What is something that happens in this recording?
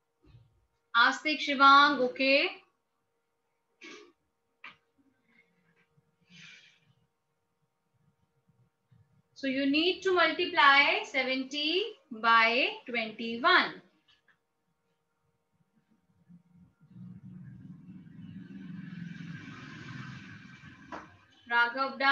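A young woman speaks calmly and clearly, close by, in short bursts with pauses.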